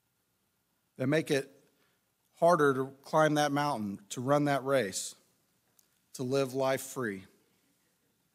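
A man speaks calmly into a microphone, in short phrases with long pauses.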